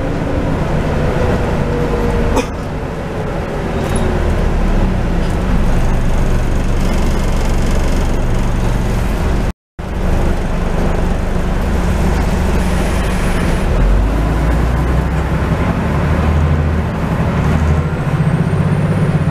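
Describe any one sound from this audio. The bus body rattles and hums as it moves.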